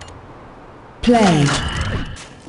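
A loud whooshing game sound effect sweeps downward.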